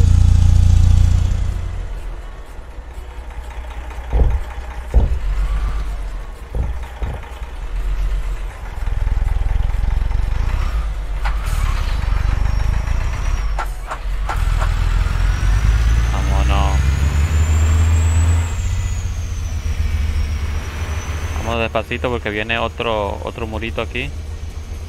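A diesel semi-truck engine rumbles while cruising.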